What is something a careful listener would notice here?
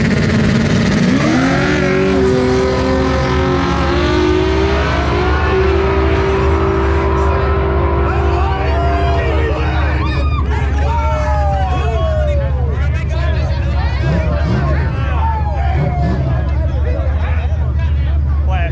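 Car engines roar as two cars launch and speed away.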